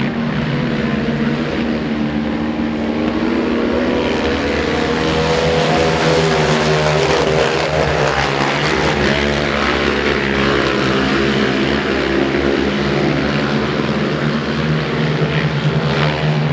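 Motorcycle engines roar and whine as bikes race around a dirt track outdoors.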